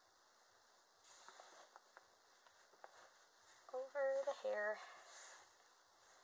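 Soft fabric rustles as clothing is pulled on.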